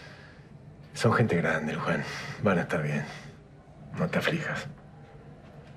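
A middle-aged man speaks calmly and warmly nearby.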